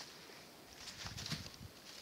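A thin stick brushes and rustles through dry grass.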